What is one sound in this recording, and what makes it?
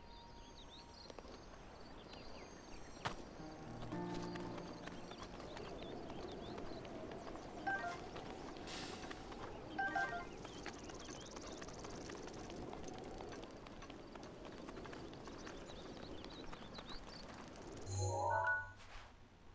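Wind blows steadily outdoors in a video game.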